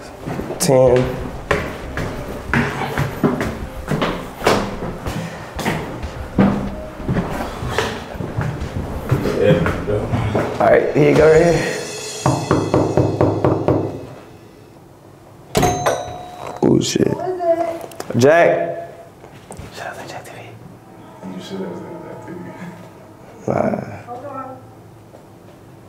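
A young man talks quietly and close by.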